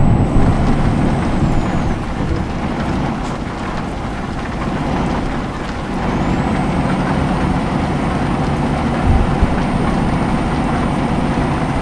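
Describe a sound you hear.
Tyres roll on a road.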